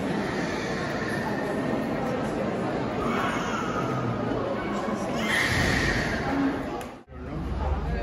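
Footsteps echo on a hard floor indoors.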